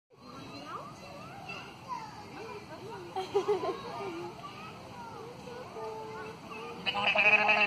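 A young girl talks nearby with animation.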